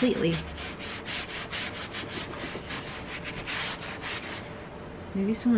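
A stiff brush scrubs quickly over leather.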